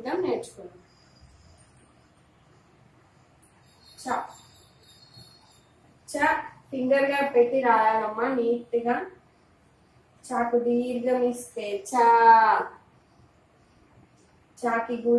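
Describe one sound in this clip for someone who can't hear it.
A woman speaks slowly and clearly, close by, as if teaching.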